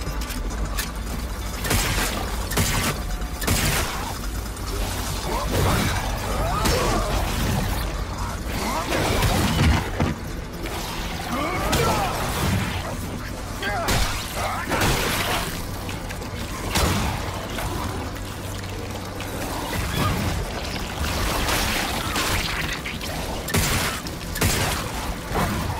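Heavy blows thud and squelch as a man fights a creature.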